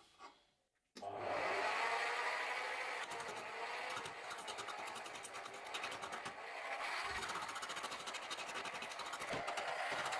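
A wood lathe spins a log with a steady whir.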